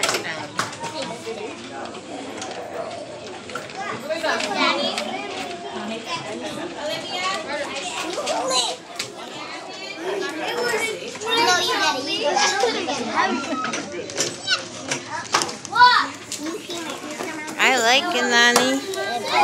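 A young girl talks and laughs happily close by.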